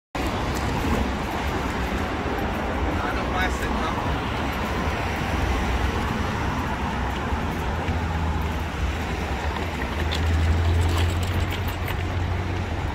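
Traffic rumbles steadily along a busy street outdoors.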